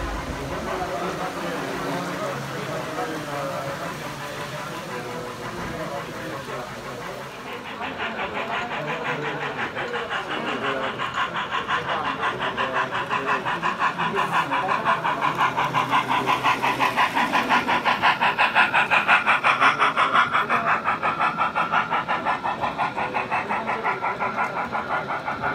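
A small model train rumbles along its tracks.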